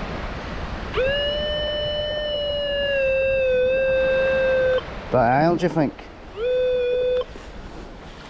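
A metal detector gives a long steady tone, then a shorter one.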